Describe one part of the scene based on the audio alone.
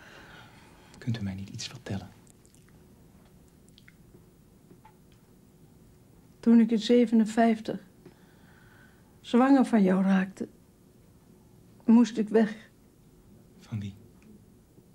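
An elderly woman speaks weakly and tearfully nearby, in short broken phrases.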